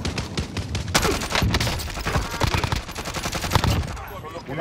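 A rifle fires several sharp shots.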